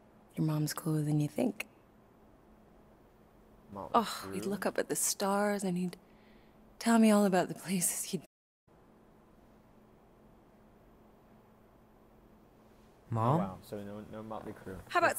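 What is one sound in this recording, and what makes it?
A woman speaks calmly and warmly close by.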